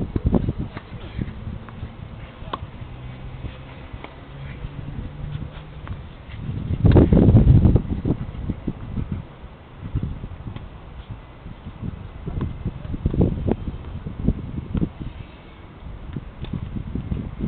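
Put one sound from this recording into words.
A tennis racket strikes a ball outdoors.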